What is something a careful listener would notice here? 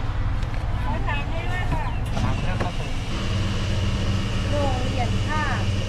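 A young man speaks briefly through a car window.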